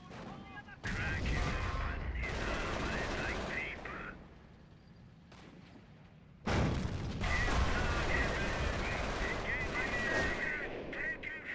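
Explosions boom and rumble in a battle.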